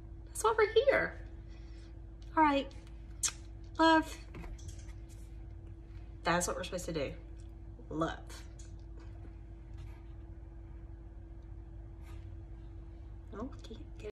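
A woman speaks expressively and close by, in short bursts with pauses.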